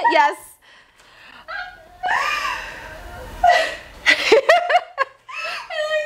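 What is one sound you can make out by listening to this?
A young woman laughs loudly close by.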